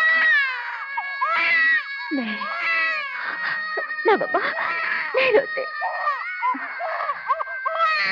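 A woman sings a gentle song close by.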